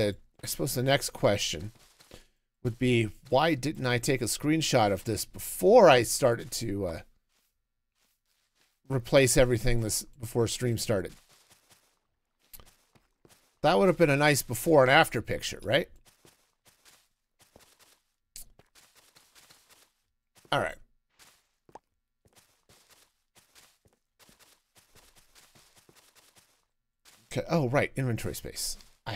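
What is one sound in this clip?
A middle-aged man talks casually into a close microphone, in bursts with pauses.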